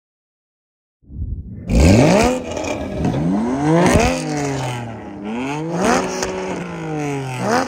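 A second sports car engine revs hard.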